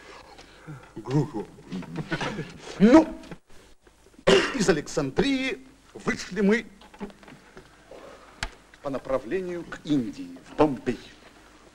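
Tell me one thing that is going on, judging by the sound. A man talks with animation, up close.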